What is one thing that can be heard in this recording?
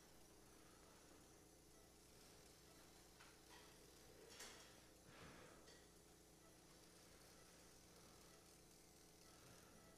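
A surgical shaver whirs softly.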